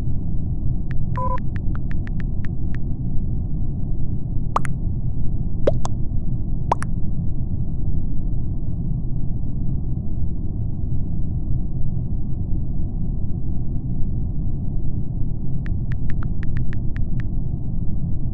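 Keyboard clicks tap quickly in short bursts.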